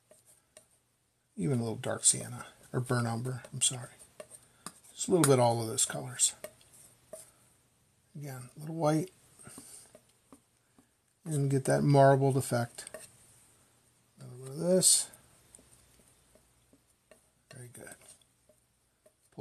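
A brush softly scrapes and dabs paint on a palette.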